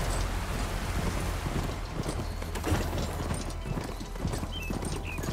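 Hooves thud steadily as a horse-like machine gallops over rough ground.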